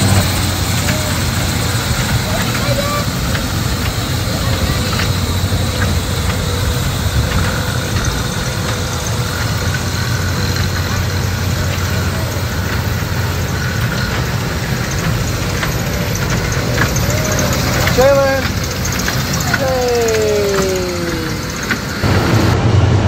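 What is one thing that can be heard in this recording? A small ride train hums and rumbles steadily along its track.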